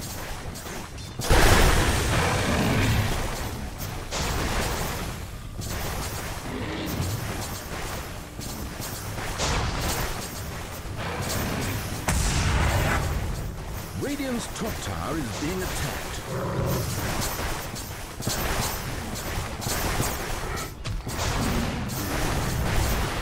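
Weapons clash and magic blasts crackle in a busy fantasy battle.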